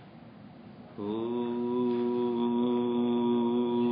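An elderly man chants a long, steady low note close by.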